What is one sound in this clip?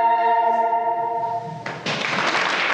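A choir sings a held chord in a large echoing hall.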